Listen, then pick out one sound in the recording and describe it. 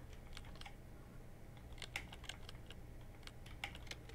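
Keypad buttons beep as they are pressed.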